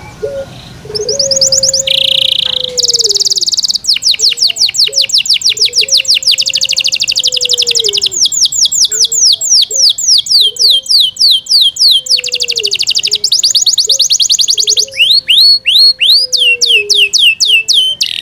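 A canary sings loud, rapid trills and warbles close by.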